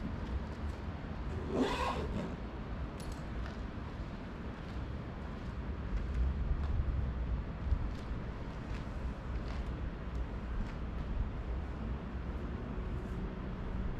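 Footsteps shuffle softly across a hard floor.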